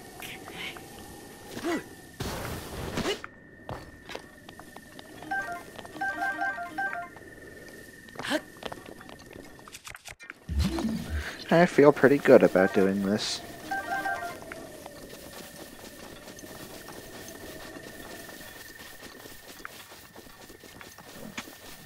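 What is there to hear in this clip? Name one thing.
Footsteps patter on grass as a game character runs.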